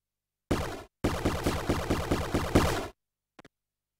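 A video game explosion bursts loudly.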